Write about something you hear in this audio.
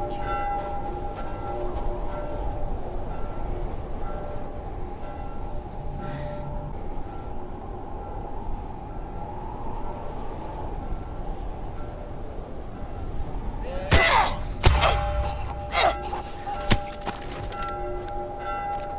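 Wind howls in a blizzard.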